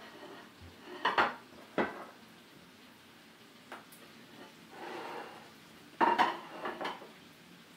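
Cooking utensils clatter and knock against dishes.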